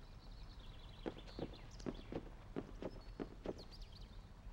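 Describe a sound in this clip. Footsteps run quickly across wooden boards.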